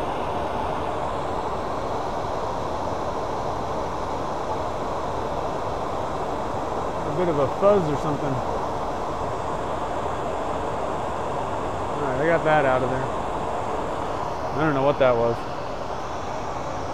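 A lathe motor hums steadily as the spindle spins.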